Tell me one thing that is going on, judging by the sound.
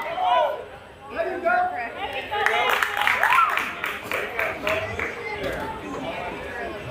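Young women shout and cheer from across an open field.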